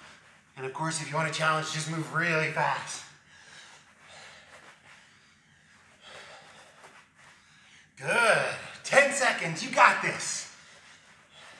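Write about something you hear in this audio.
A man speaks with energy, close to a microphone.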